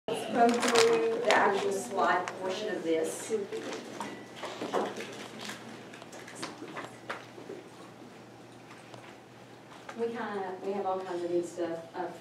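A woman lectures to a class, heard from across a room.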